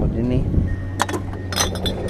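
Glass bottles clink together.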